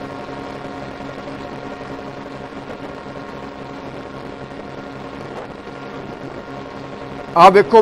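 Ship engines drone steadily across the water.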